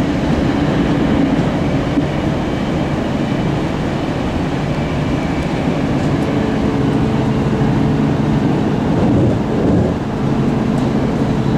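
Wheels hum and whine on the rails.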